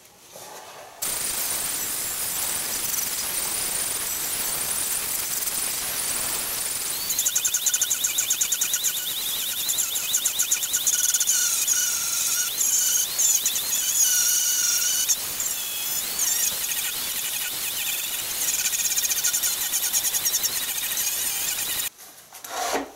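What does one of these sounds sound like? An angle grinder whines loudly as it sands wood.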